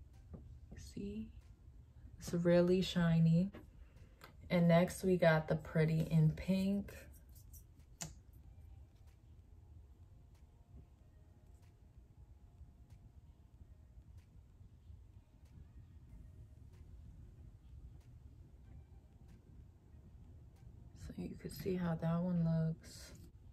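A young woman speaks calmly and softly, close by.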